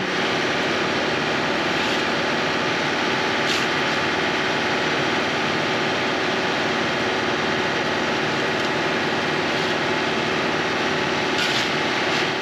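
A shovel scrapes and scoops dirt.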